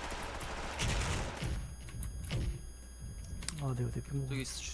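A grenade explodes with a loud blast.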